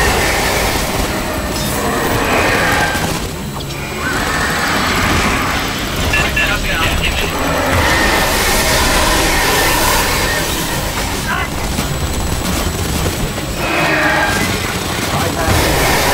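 Alien creatures screech.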